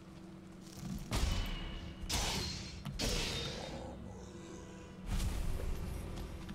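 A blade swings and strikes repeatedly.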